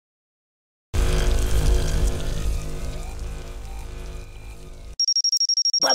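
Laser beams buzz and crackle loudly.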